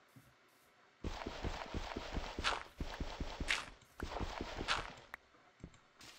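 Dirt blocks crunch with quick rhythmic digging taps.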